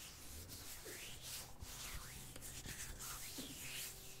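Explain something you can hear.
Fingernails tap and click close to a microphone.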